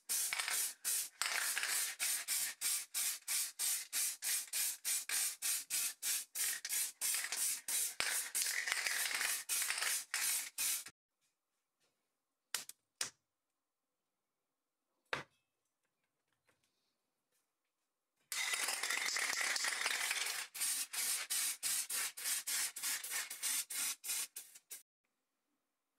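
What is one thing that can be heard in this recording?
A spray can hisses in short, rapid bursts.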